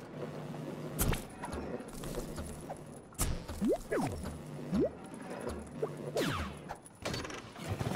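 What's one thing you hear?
Short chiming game sound effects ring out.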